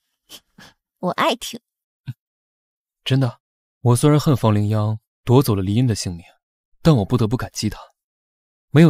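A young man speaks softly and close by.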